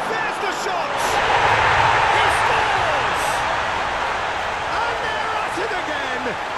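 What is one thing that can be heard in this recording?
A stadium crowd erupts in a loud cheer that slowly fades.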